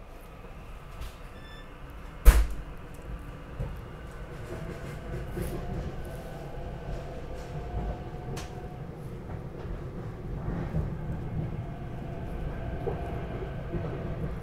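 A train rumbles louder as it pulls away and picks up speed.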